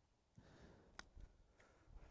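A putter taps a golf ball with a soft click.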